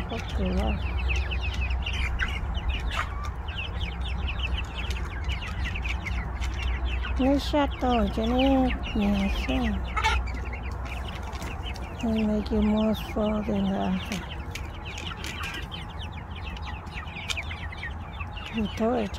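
A flock of young chickens cheeps and chirps.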